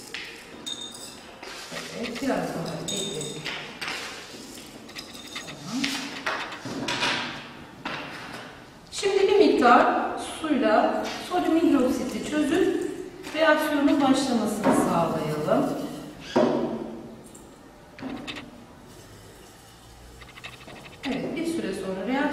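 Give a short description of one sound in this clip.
A woman speaks calmly, explaining, close by.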